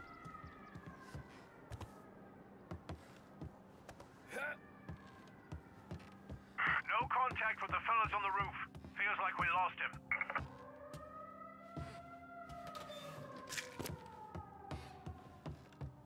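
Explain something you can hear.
Footsteps thump on wooden boards.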